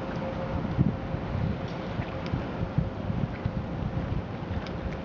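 Water splashes and churns against a moving boat's hull.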